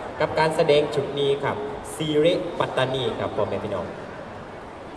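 A man speaks with animation over a loudspeaker in a large echoing hall.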